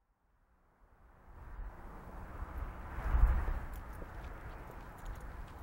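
Flags flap in the wind.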